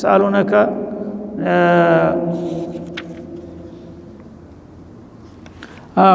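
An elderly man chants slowly into a microphone in a reverberant room.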